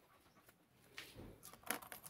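Keys jingle and clink.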